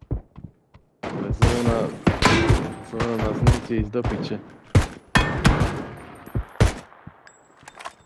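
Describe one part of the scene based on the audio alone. A rifle fires single shots, each a sharp crack.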